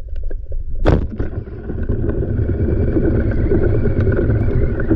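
Air bubbles gurgle and fizz underwater.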